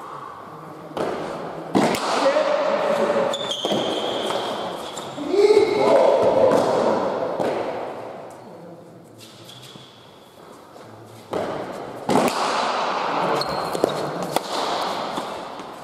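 A ball smacks hard against a wall and the floor, echoing through a large hall.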